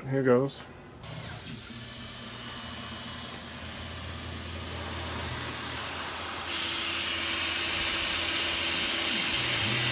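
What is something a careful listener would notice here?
A milling machine whirs steadily.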